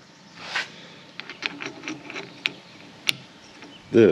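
Plastic and metal parts click as they are handled.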